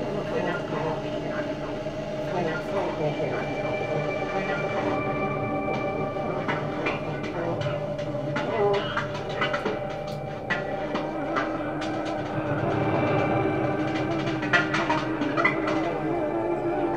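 A saxophone plays sustained, wavering notes close by.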